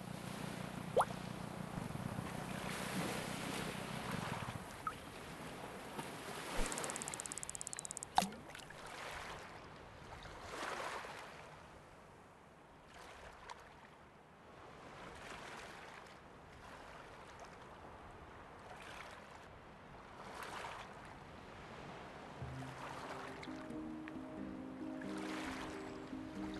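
Waves wash gently, rising and falling again and again.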